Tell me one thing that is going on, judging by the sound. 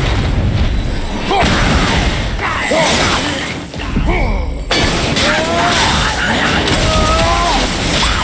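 Creatures screech and snarl.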